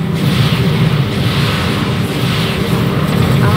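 Rockets whoosh as they fire in quick succession.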